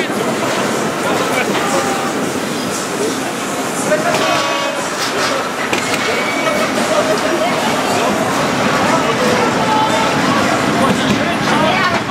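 A roller coaster car rattles and rumbles along its track.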